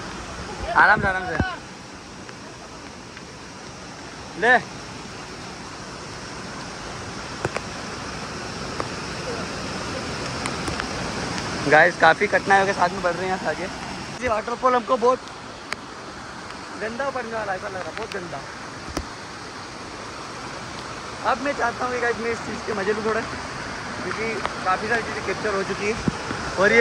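Muddy water rushes steadily over rocks.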